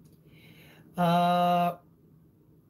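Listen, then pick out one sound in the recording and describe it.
A man sings a long, steady note.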